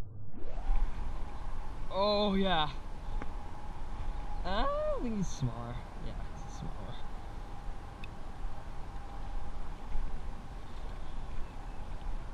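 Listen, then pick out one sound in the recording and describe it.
A fishing reel clicks as its handle is wound.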